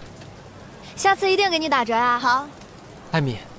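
A young woman speaks brightly and cheerfully.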